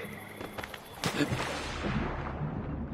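A body splashes into water.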